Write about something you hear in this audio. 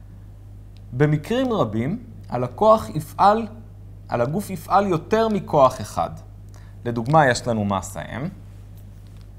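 A man speaks calmly and clearly close to a microphone.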